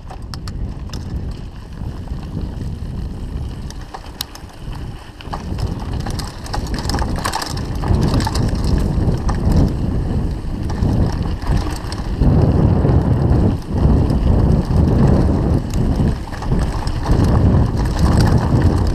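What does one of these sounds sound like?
Small clicks and rattles come from a bicycle's frame and parts.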